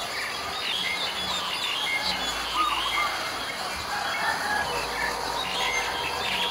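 A bird sings nearby with quick, varied whistles and chirps.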